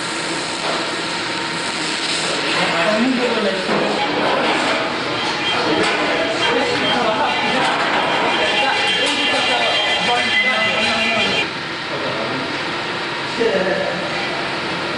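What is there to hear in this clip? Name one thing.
A gas torch roars and hisses steadily.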